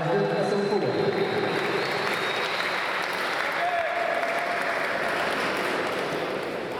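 A small crowd applauds and cheers in a large echoing hall.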